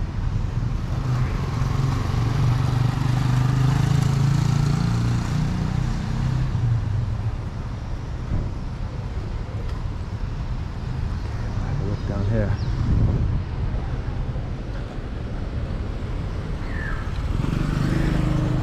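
A motorcycle engine hums as it rides past nearby.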